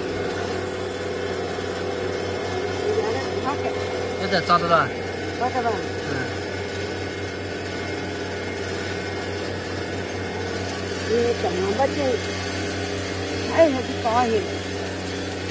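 Leaves rustle as a hand pulls at a plant.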